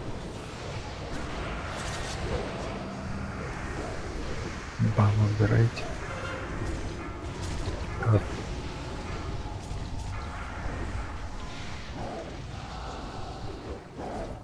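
Game spell effects crackle and boom during a battle.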